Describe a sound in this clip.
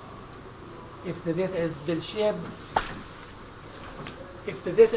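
A young woman speaks calmly through a microphone in a large room.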